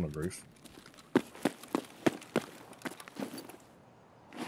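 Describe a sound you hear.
Footsteps crunch on gravel.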